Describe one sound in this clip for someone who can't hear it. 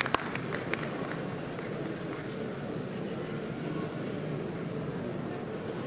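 A piano plays softly in a large hall.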